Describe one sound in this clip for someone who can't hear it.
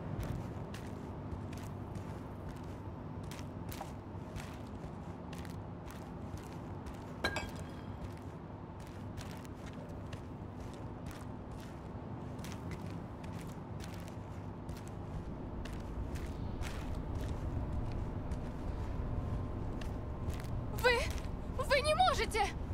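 Footsteps tread steadily down concrete stairs.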